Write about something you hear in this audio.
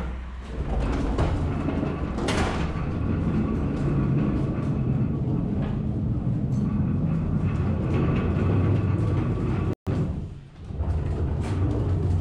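A pallet jack rolls and rattles across a hollow floor.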